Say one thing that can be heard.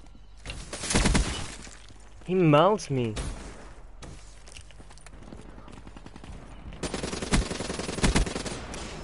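A rapid burst of automatic gunfire rattles loudly.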